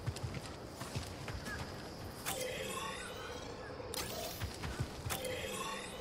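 Footsteps thud on dirt.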